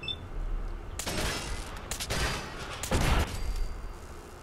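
Gunfire bursts loudly.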